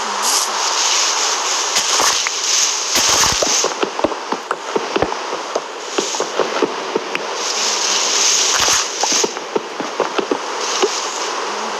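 Blocks crack and break apart in a video game.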